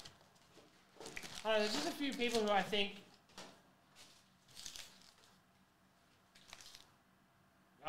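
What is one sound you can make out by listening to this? Foil card packs rustle and tap as they are handled.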